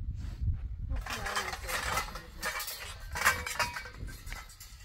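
A metal frame rattles and scrapes on the ground.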